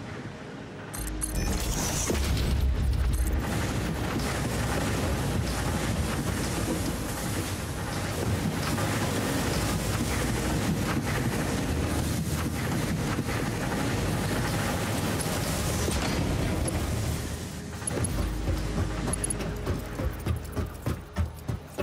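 A futuristic building tool whirs and clicks as parts snap into place.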